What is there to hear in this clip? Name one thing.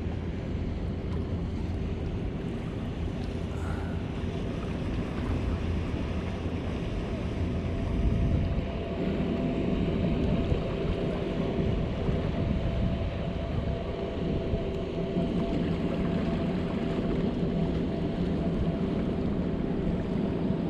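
Wind blows steadily across the microphone outdoors by open water.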